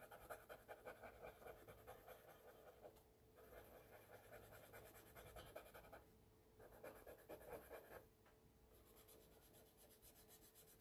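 A cotton swab rubs softly on paper in quick, even strokes.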